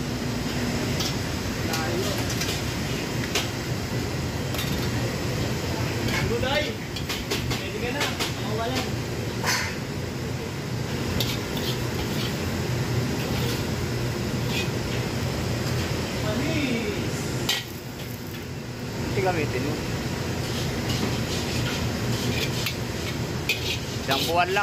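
A metal ladle scrapes and clinks against a wok.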